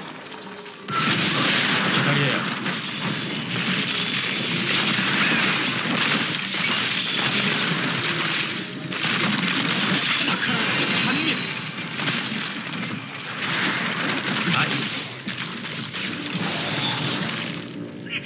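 Magic blasts, explosions and clashing weapons crash loudly and continuously in a busy fight.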